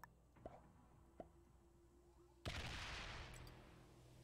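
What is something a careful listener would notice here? Dice rattle and tumble.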